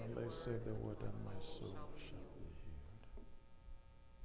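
A man speaks calmly over a microphone in a large, echoing room.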